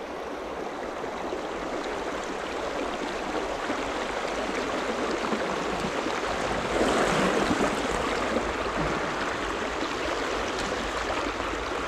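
A shallow river rushes and burbles over stones nearby.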